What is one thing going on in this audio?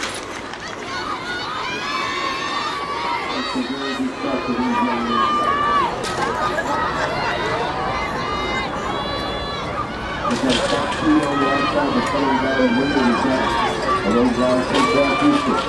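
A man and a woman chat casually nearby, outdoors.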